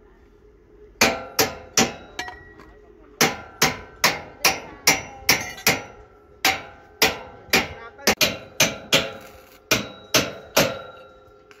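Metal blows strike steel formwork with a ringing clang.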